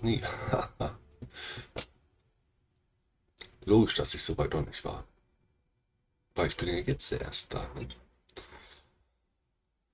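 A man talks with animation, close to a microphone, in short bursts.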